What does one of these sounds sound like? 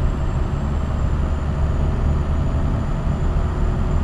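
Another truck passes by in the opposite lane.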